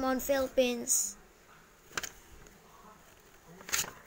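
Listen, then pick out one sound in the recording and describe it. A paper sheet rustles and crinkles as it is handled.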